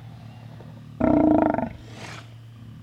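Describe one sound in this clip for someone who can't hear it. A sea lion lets out a loud, deep roar close by.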